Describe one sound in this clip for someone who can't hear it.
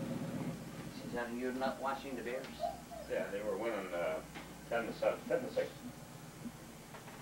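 A man and a woman talk casually nearby in a small room.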